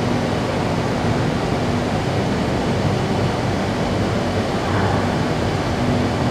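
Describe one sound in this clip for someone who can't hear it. An electric metro train rumbles as it pulls into an underground station.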